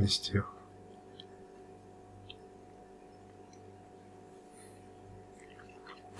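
A young man chews and smacks his lips while eating.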